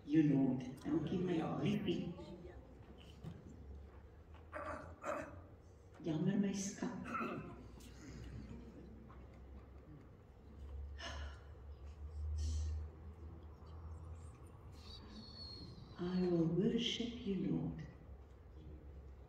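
A woman speaks into a microphone in a large echoing hall, with pauses between phrases.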